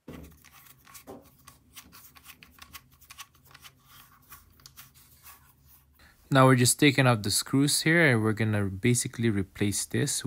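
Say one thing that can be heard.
A small screwdriver turns screws with faint ticks.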